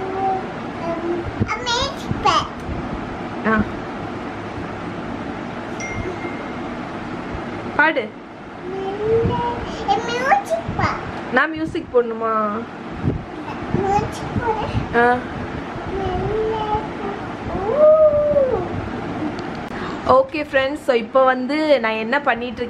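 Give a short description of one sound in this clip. A young child talks and laughs close by, with animation.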